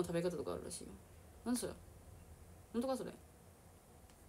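A young woman speaks softly in short phrases close to the microphone.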